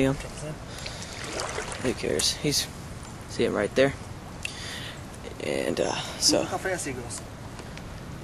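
Water splashes as a hand stirs it.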